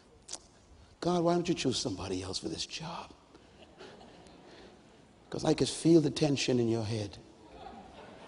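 A man speaks loudly and with emphasis through a microphone in a large hall.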